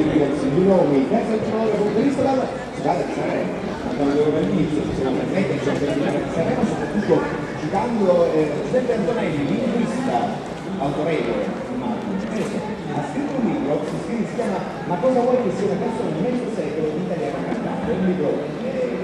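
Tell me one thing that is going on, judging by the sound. Music plays loudly through outdoor loudspeakers.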